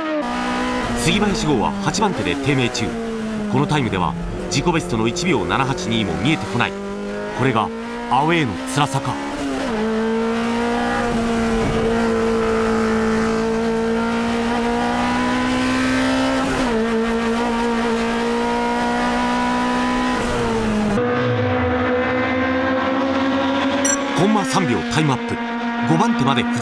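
Tyres screech on the track.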